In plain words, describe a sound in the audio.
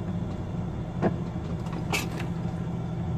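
Metal clanks sharply as a container is released.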